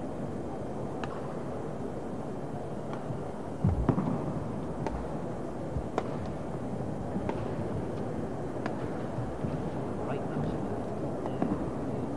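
A shuttlecock is struck sharply by rackets, back and forth.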